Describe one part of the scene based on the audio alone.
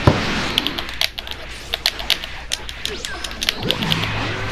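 Rapid punches and kicks land with sharp thuds.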